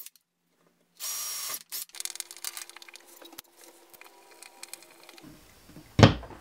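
A cordless drill whirs briefly.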